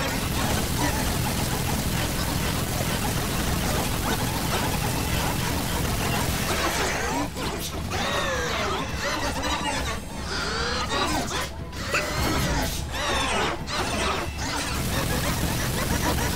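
A rotary gatling gun fires in bursts.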